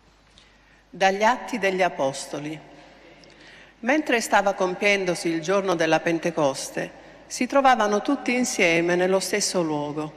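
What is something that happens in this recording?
A middle-aged woman reads aloud through a microphone in a large echoing hall.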